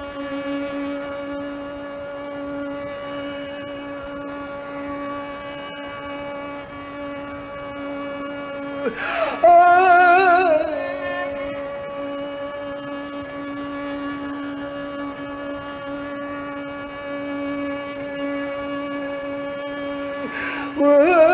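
A harmonium holds a steady droning chord.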